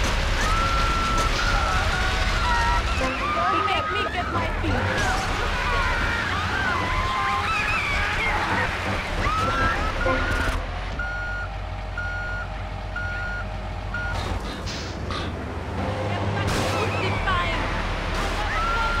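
A water cannon hisses as it sprays.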